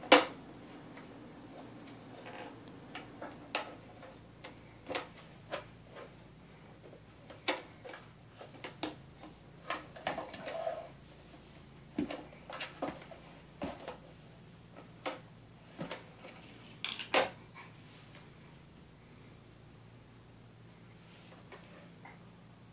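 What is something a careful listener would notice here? A baby knocks plastic toys against a plastic bucket.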